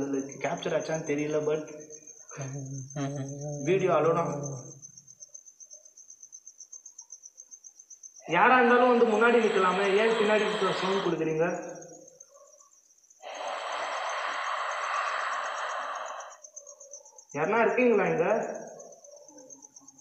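A young man speaks nearby in a tense voice.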